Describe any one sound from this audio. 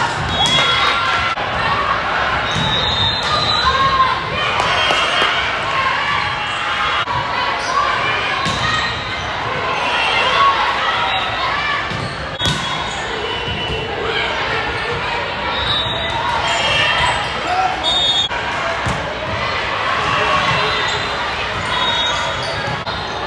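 Sneakers squeak on the hard court.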